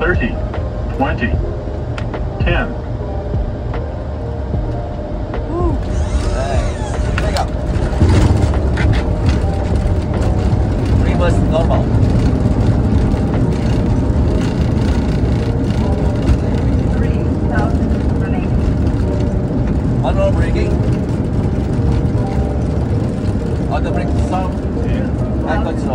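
Landing gear rumbles over the runway.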